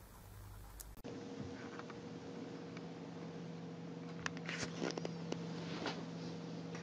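A kitten scampers and pounces on a soft rug.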